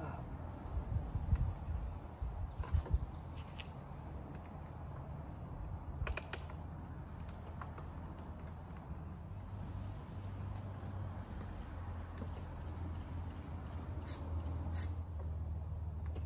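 Plastic parts of a scooter click and knock.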